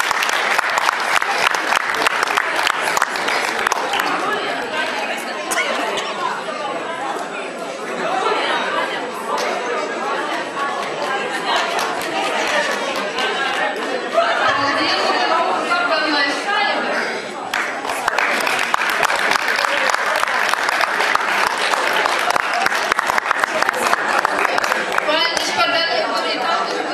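An audience claps steadily in a large echoing hall.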